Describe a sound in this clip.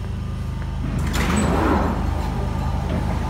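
Train doors slide open with a loud hiss.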